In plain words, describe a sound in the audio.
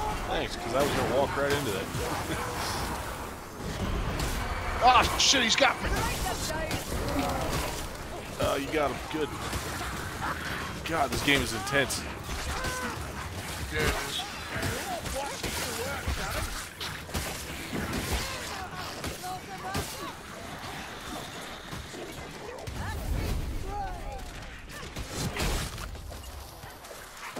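Fiery blasts burst with loud booms.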